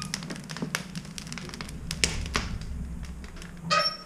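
A metal stove door clanks shut.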